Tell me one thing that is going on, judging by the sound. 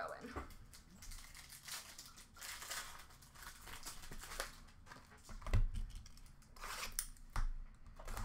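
Plastic card wrappers rustle and crinkle.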